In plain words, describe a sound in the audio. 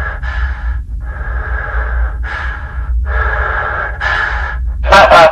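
A man breathes slowly and heavily inside a helmet.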